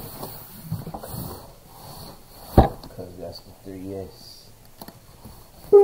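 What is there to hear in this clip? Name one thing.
A cardboard box scrapes and rustles as it is opened.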